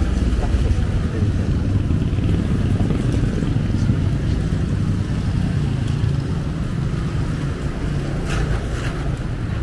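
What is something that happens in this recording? Motorcycle engines hum along a street.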